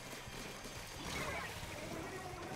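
Ink splatters with a loud wet burst.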